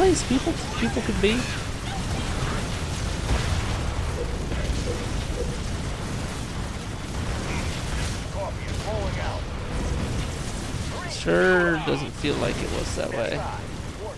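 Guns fire and explosions boom in a battle.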